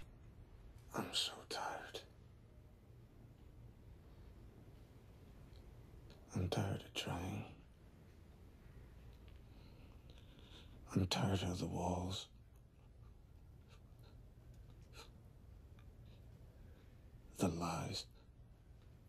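A man speaks quietly in short, hesitant phrases, close by.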